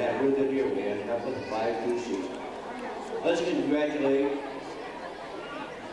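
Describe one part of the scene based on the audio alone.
A man speaks through a handheld microphone in a large echoing hall.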